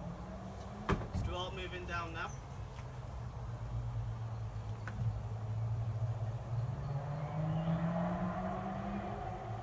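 A swarm of honeybees buzzes inside a hive box.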